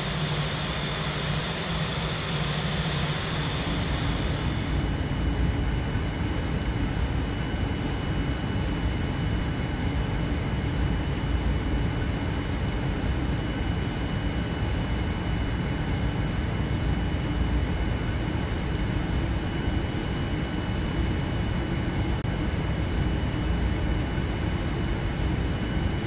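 Jet engines roar steadily as an airliner taxis and speeds up along a runway.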